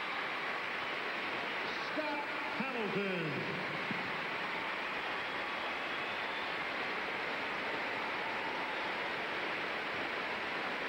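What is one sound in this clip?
A large crowd applauds and cheers steadily in a big echoing arena.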